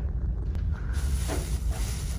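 A hand rubs over rough fabric.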